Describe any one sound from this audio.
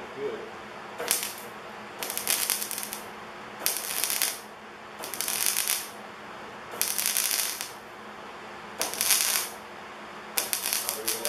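An arc welder crackles and hisses in short repeated bursts.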